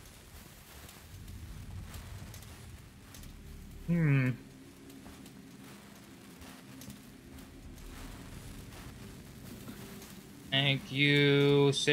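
A flare fizzes and hisses steadily.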